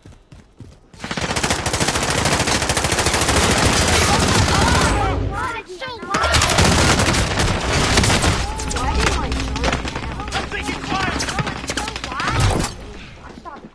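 Gunfire rattles loudly in rapid bursts.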